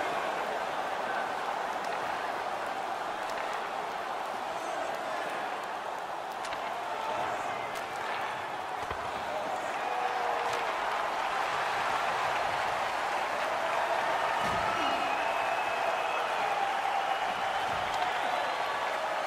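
A large crowd roars steadily in an echoing arena.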